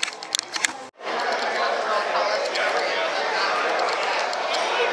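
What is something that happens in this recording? A crowd of people chatters in a large, echoing room.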